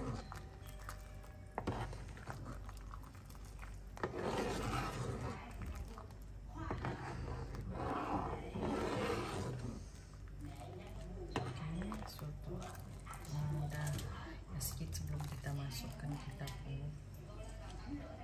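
A ladle stirs and splashes liquid in a pot.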